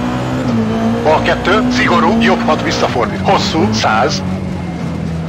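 Tyres squeal through a tight corner.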